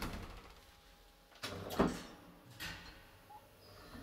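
An elevator door slides shut.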